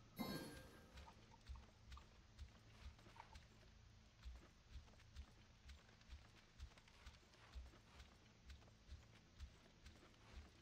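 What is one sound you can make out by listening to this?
Footsteps thud in a quick, steady rhythm.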